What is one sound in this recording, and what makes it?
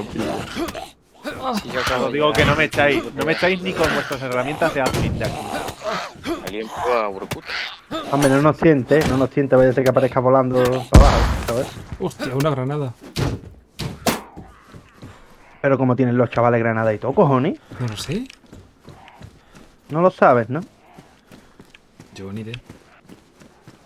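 A man talks with animation through a microphone, close by.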